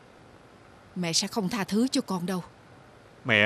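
A middle-aged woman speaks in a worried tone nearby.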